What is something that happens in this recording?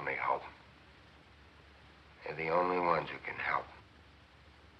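A man speaks nearby in a tense, worried voice.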